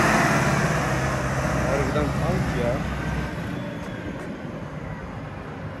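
A tractor engine rumbles nearby and fades as it drives away.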